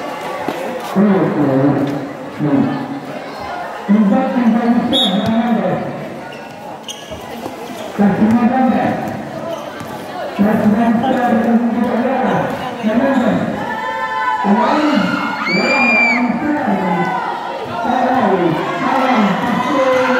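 Young men talk and call out nearby.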